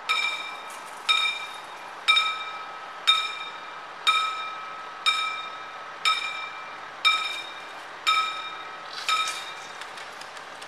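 A level crossing bell rings loudly, striking about once a second, then stops.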